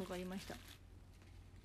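A young woman makes a short voiced sound close to the microphone.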